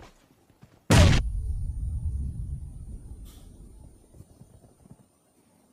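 A loud explosion booms and then rumbles away.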